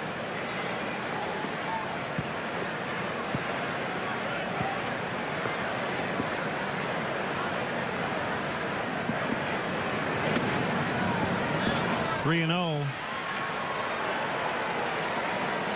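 A stadium crowd murmurs steadily outdoors.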